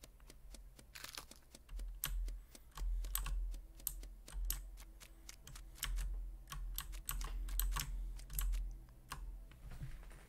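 Quick light footsteps patter across a floor.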